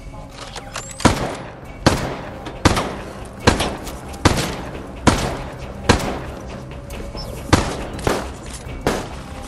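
A rifle fires single loud shots at a steady pace.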